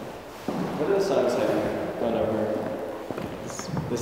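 Shoes tap and scuff on a wooden floor.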